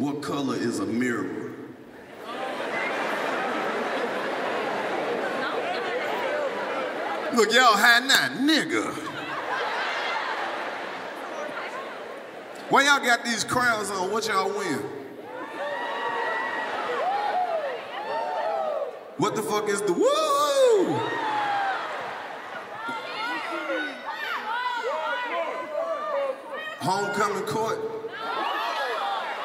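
A man speaks with animation into a microphone over loudspeakers in a large echoing hall.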